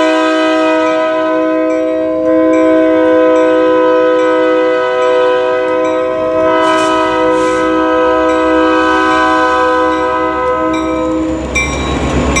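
A locomotive horn blares loudly and steadily.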